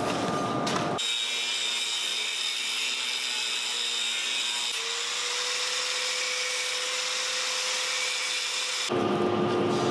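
An angle grinder whines steadily as it grinds metal.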